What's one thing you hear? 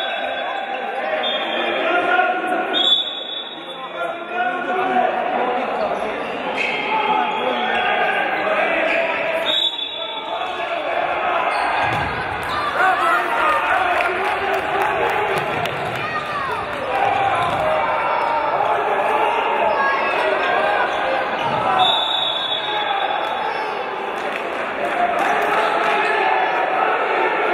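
A crowd of spectators murmurs and calls out in a large echoing hall.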